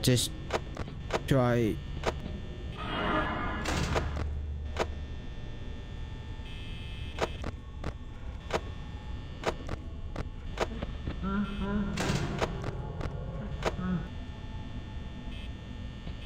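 Buttons click sharply, again and again.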